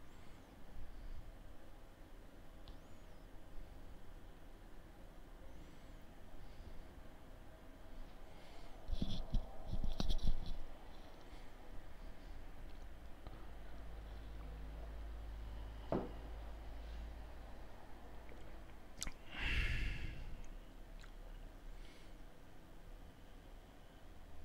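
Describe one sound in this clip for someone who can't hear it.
A man speaks calmly and close into a headset microphone.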